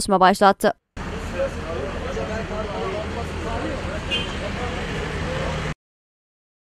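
Several men talk in the background outdoors.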